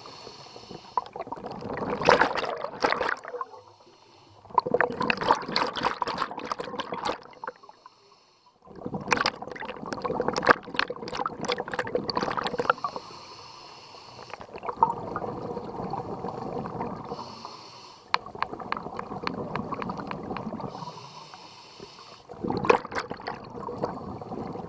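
Bubbles gurgle and crackle loudly as a diver breathes out, again and again.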